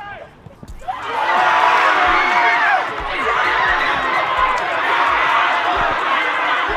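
A crowd of young men cheers and shouts loudly outdoors.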